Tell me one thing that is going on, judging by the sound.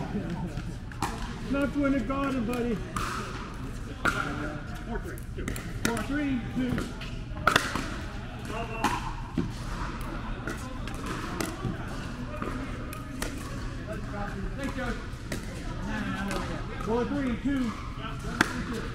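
Paddles strike a plastic ball with sharp hollow pops.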